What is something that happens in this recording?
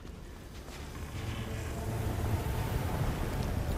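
A soft shimmering rush swells up.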